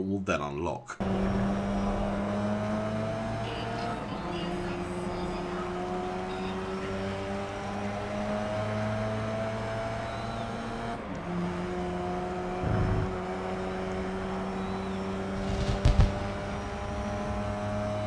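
A race car engine roars steadily and climbs in pitch as it speeds up through the gears.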